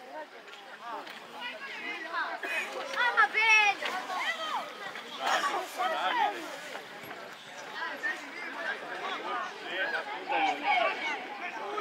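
Young girls shout and call out across an open field.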